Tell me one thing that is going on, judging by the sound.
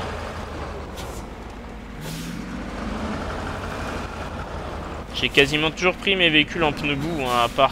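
A truck engine rumbles as the truck drives over rough ground.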